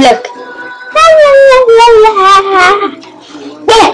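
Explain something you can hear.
A young boy sings loudly in a wavering, high voice close to a microphone.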